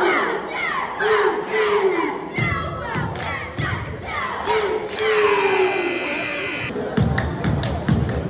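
A group of young women chant loudly together in a large echoing hall.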